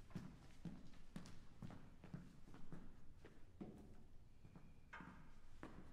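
Footsteps thud across a wooden stage in an echoing hall.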